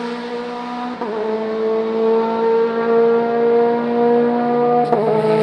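A racing car engine shifts gear with a brief dip in pitch.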